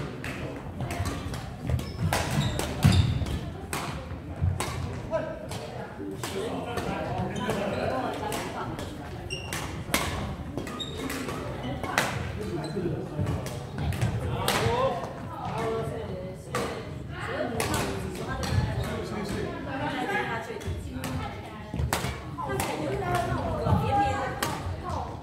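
Shuttlecocks are struck with sharp racket pops, again and again, in a large echoing hall.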